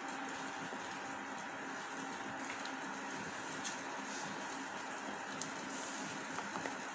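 Gloved hands squish and rustle through a crumbly mixture in a metal bowl.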